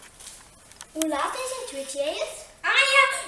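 Young children talk and laugh close by.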